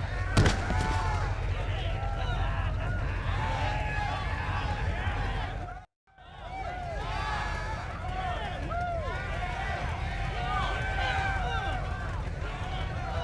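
A crowd of men cheers and shouts loudly outdoors.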